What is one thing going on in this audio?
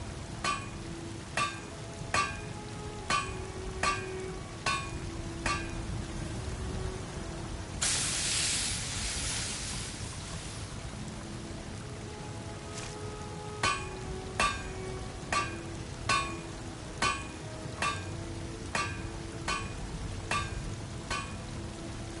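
A hammer strikes metal on an anvil with short ringing clangs.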